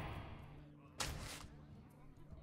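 A computer game plays a short whooshing effect.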